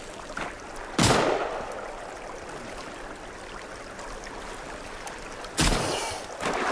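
A shotgun fires loud blasts that echo through the forest.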